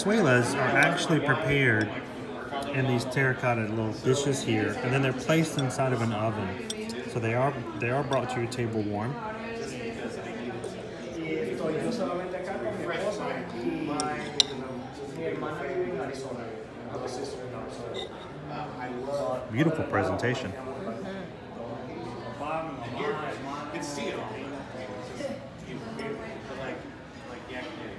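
Metal utensils clink against a ceramic dish.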